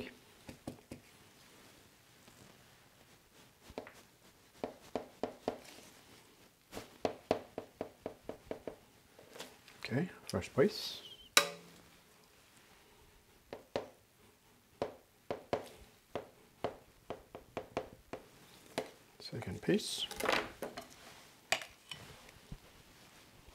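A metal spatula scrapes and taps against a cake board in quick bursts.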